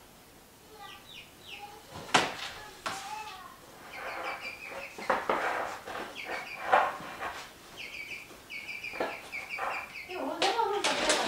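A hen clucks and squawks close by.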